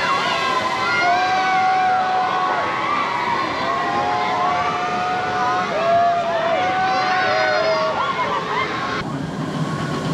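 Children and young women scream with delight from a spinning ride overhead.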